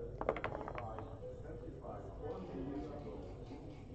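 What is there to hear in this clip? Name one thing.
Dice rattle and land on a board.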